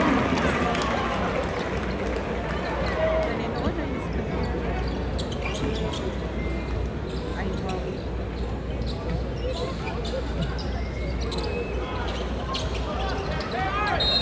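Basketball shoes squeak sharply on the court.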